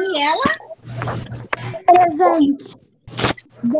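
A young girl speaks with animation over an online call.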